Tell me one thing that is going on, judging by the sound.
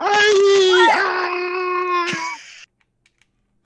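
A young woman laughs loudly over an online call.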